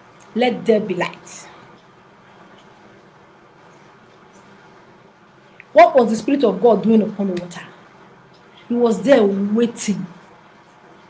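A woman speaks with animation into a close microphone, in short bursts with pauses.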